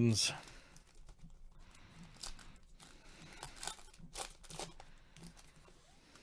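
A foil wrapper crinkles.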